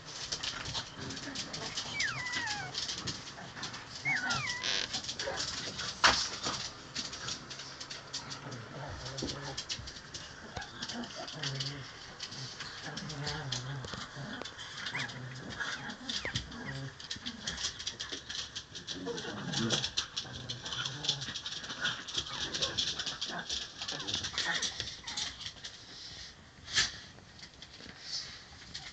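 Puppies scuffle and scratch on a rug.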